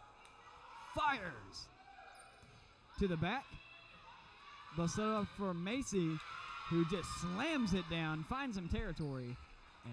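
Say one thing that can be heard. A volleyball is struck with dull thuds that echo in a large hall.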